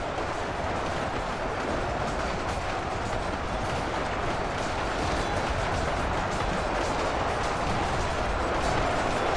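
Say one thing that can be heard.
A large army marches with a steady clatter of armour and feet.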